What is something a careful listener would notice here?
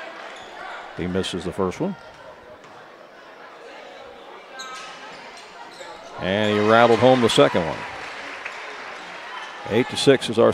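Spectators cheer and shout loudly.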